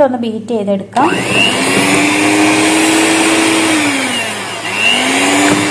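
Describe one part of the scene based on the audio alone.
An electric hand mixer whirs loudly, its pitch dipping and rising.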